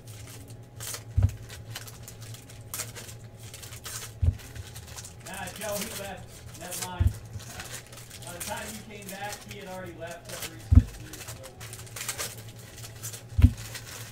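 Foil wrappers crinkle and rustle as they are torn open by hand.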